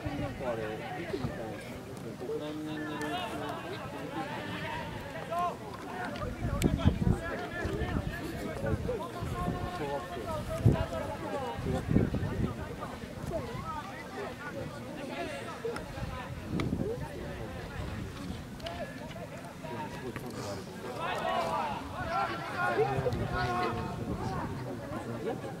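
Spectators chatter and call out nearby.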